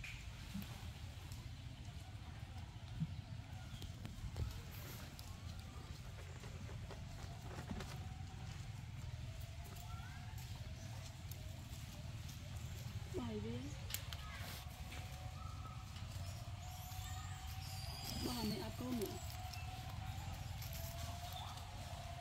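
A monkey's feet rustle over dry leaves.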